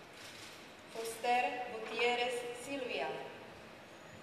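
A young woman sings briefly through a microphone in an echoing hall.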